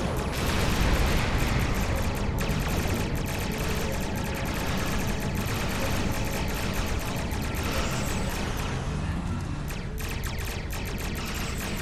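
A spaceship's engines rumble steadily.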